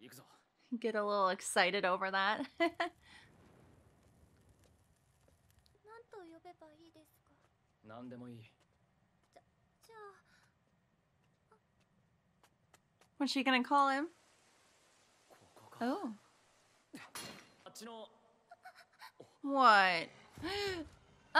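A young woman talks animatedly and close to a microphone, with pauses.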